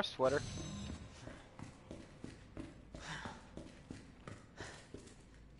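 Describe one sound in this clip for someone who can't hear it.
Footsteps thud on a hard floor at a steady walking pace.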